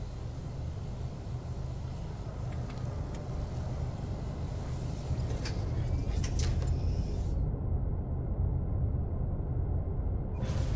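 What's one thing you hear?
A spaceship engine rumbles with a steady low drone.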